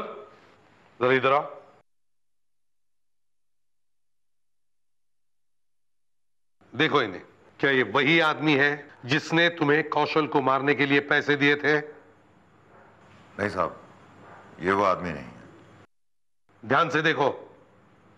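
A man answers in a low, tense voice.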